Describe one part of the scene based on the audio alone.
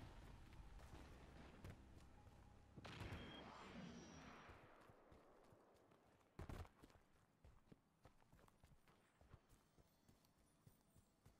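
Footsteps rustle through grass and dirt.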